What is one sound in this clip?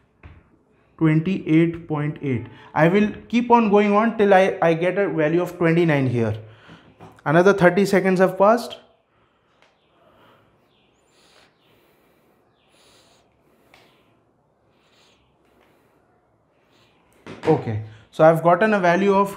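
A man speaks calmly and clearly.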